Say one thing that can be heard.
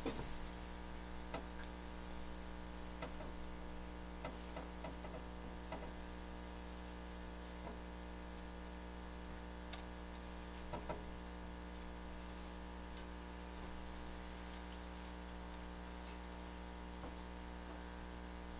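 Small tools tap and scrape on hard molds.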